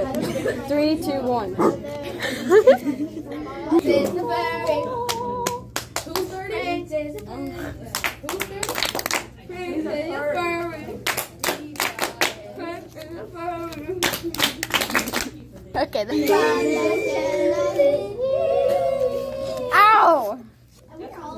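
Young girls laugh loudly.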